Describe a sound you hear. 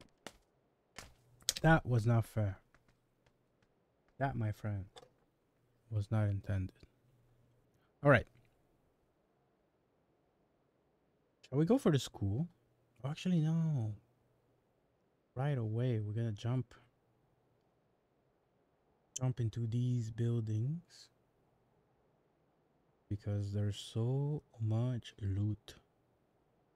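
A man talks casually into a close microphone in short bursts.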